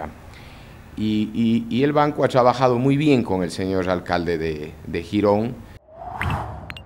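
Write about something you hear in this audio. A middle-aged man speaks calmly into a microphone close by.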